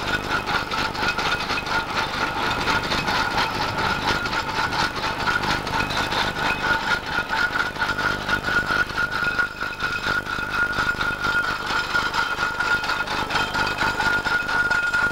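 Heavy iron wheels rumble on a paved road.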